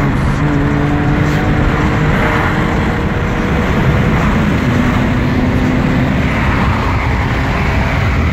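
An engine roars under load from inside a car at speed.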